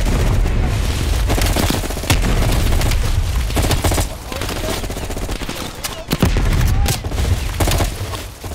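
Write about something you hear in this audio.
Gunfire rattles in the distance.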